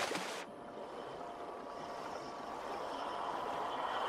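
Steam hisses in a large echoing space.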